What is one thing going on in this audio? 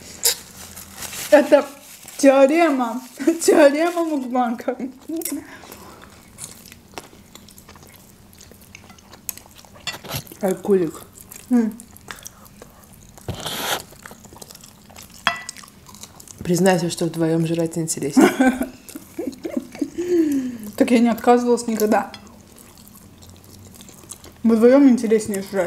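Young women chew and smack food close to a microphone.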